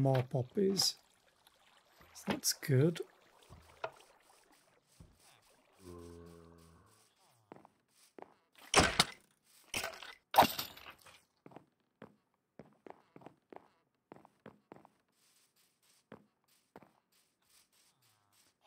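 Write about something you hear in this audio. Footsteps pad softly over grass and dirt.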